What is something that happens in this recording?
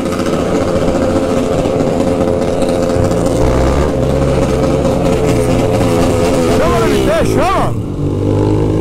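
A motorcycle engine hums steadily and revs as it rides.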